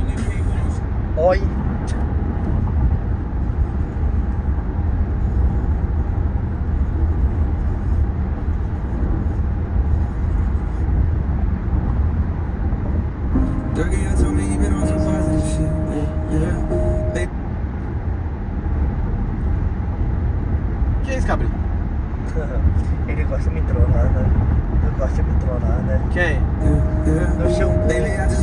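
A car's engine and tyres rumble steadily on a highway, heard from inside the car.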